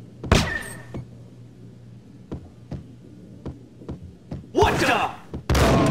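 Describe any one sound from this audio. Footsteps thud on a carpeted floor.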